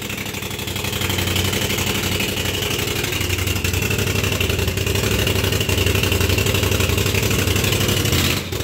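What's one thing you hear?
An engine idles steadily close by with a low rumble.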